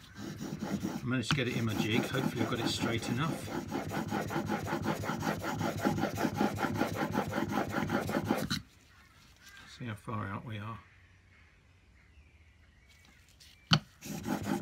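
A blade scrapes rapidly back and forth on a sharpening stone.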